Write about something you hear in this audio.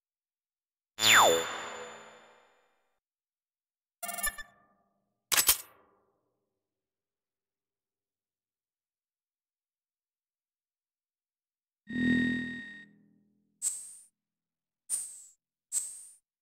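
Short electronic game sound effects chime and whoosh.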